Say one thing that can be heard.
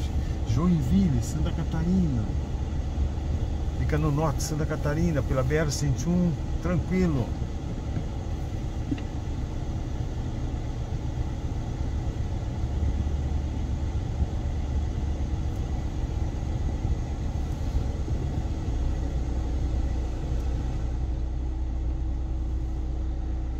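A car engine idles, heard from inside the car.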